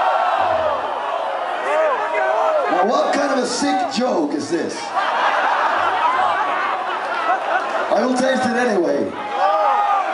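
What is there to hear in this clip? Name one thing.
A man sings loudly through a microphone over an amplified band.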